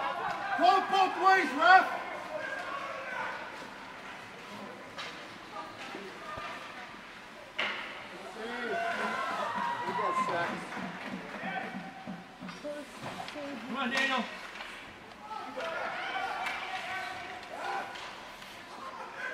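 Spectators cheer and shout in an echoing rink.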